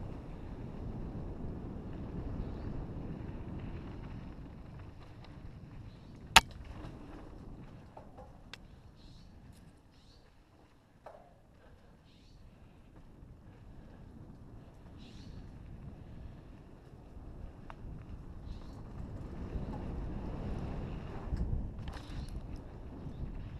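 Bike tyres crunch and rattle over dirt and gravel.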